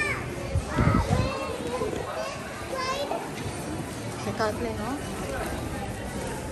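Shoppers chatter nearby.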